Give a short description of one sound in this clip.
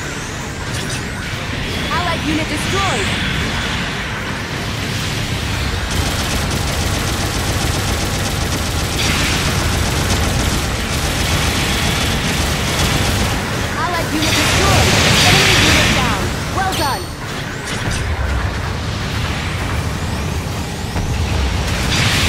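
Thrusters roar with a low rumble.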